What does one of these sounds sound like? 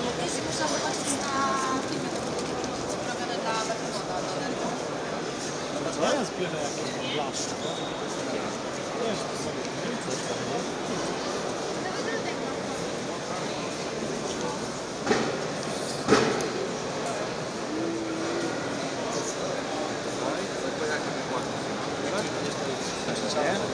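A crowd chatters and murmurs in a large, busy hall.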